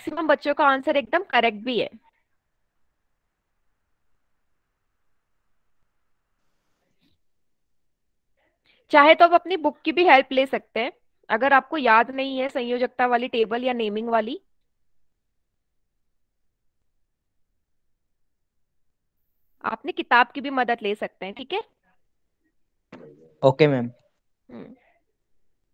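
A young woman speaks calmly through a headset microphone on an online call.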